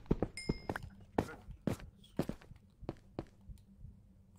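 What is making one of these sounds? A pickaxe chips at stone blocks in quick, repeated knocks.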